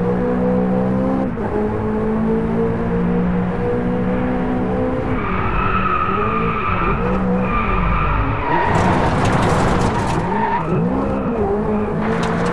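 A sports car engine roars steadily, its pitch rising and falling with gear changes.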